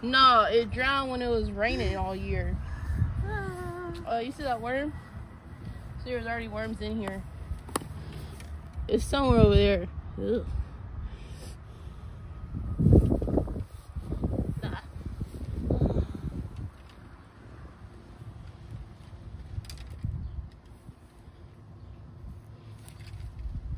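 A shovel scrapes and digs into loose soil.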